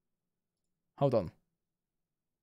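A young man says a short word close to a microphone.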